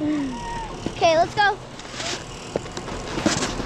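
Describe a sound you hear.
A snowboard scrapes across snow.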